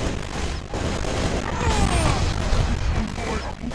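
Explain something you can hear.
An explosion bursts with a crackling blast.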